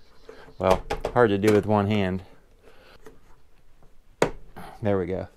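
A plastic tray scrapes and clicks into a wooden box.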